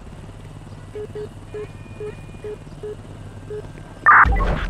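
A handheld radio beeps with short, even electronic tones.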